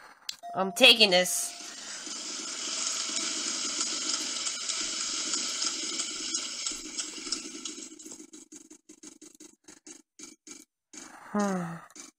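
A game wheel clicks rapidly as it spins, then slows.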